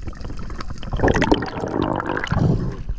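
Water splashes loudly at the surface.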